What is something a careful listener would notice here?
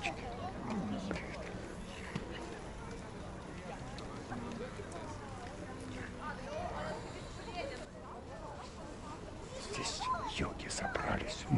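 A group of people chats quietly some distance away, outdoors.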